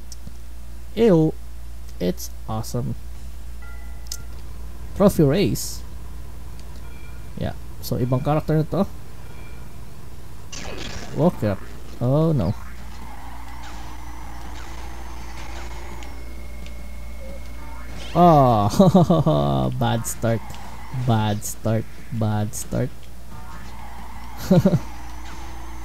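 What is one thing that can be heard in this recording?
A man talks into a close microphone with animation, in short bursts.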